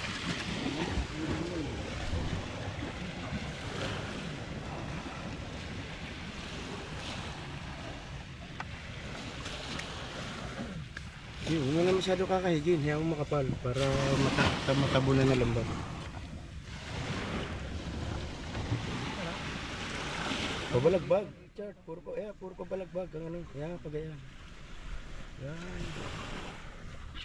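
Sandpaper scrapes over a wooden hull.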